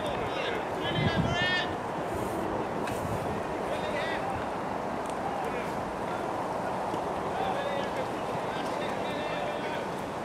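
A group of young men chat and call out at a distance outdoors.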